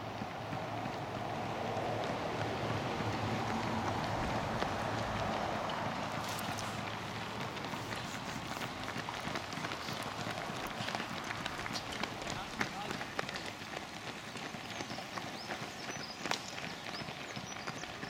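Many running shoes patter on pavement.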